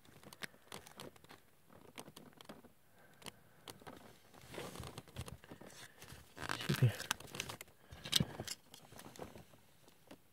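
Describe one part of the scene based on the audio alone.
A plastic sticker sheet crinkles and rustles in hands.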